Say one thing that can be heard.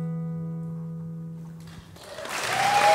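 A band holds a final chord that rings out in a large echoing hall.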